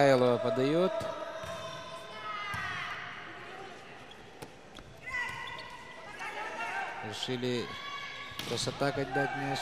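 A volleyball is struck with sharp slaps in a large echoing hall.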